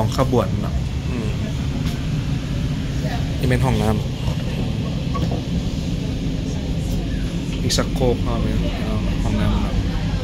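A man talks close by with animation.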